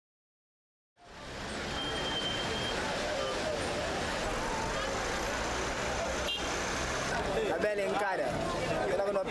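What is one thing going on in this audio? Traffic hums along a street.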